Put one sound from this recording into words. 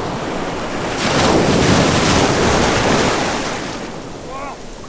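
Waves crash and splash, rushing loudly.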